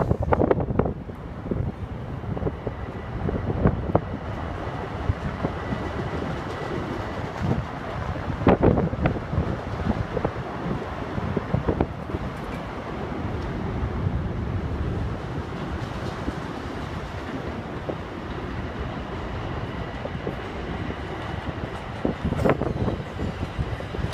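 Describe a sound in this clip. A train idles nearby with a low, steady hum.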